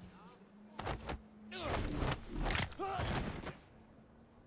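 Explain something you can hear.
A brief scuffle thumps and thuds nearby.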